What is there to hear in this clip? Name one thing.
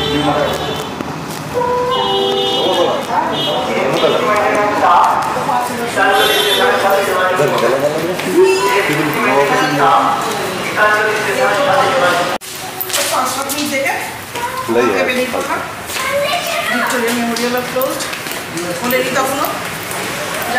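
A young woman talks close by with animation.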